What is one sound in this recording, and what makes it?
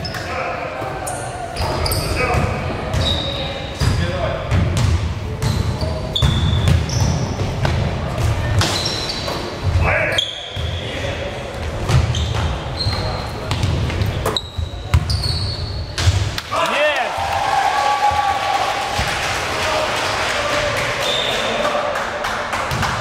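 A basketball bounces on a wooden floor with sharp thuds, echoing in a large hall.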